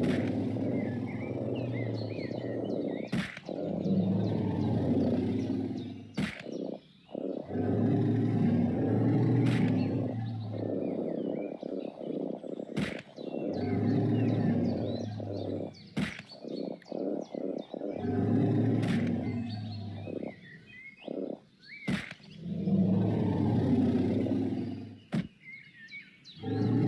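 Small dinosaurs screech and squeal in short bursts.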